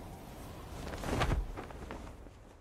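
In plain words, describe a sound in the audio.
A parachute snaps open with a sudden whoosh.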